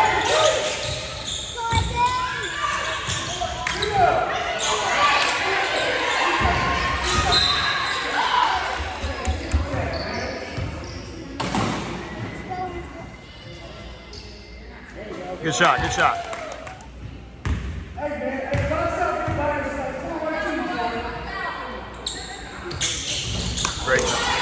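Players and spectators call out and talk, echoing in the gym.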